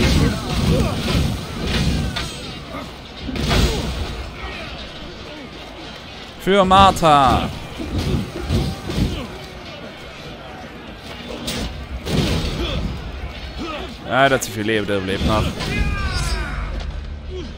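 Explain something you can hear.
Flames burst and whoosh.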